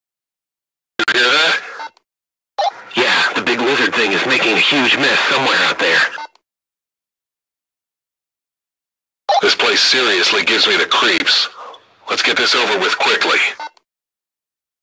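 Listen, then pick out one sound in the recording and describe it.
Voices talk over a two-way radio.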